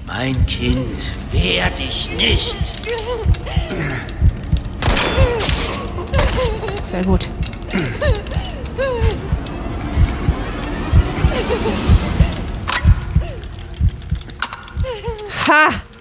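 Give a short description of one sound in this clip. A young woman speaks emotionally.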